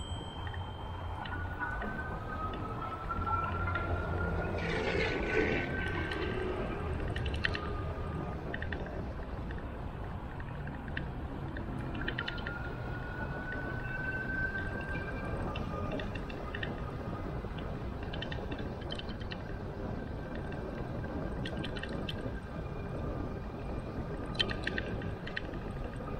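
Bicycle tyres roll steadily over smooth pavement.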